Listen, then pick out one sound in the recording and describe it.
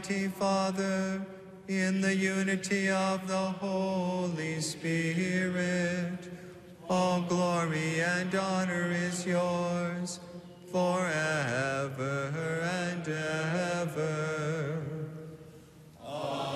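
A man chants slowly in a sung voice, echoing in a large hall.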